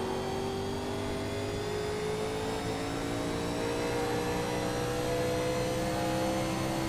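A race car engine roars at high revs and slowly climbs in pitch.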